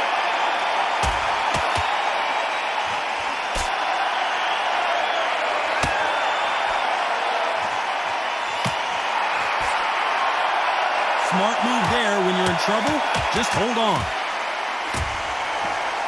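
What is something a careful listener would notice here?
Gloved punches land with dull thuds.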